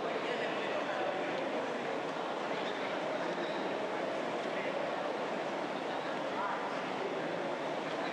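Many people murmur and talk at once in a large echoing hall.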